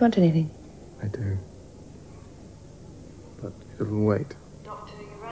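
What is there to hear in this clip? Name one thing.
A man speaks weakly in a low voice.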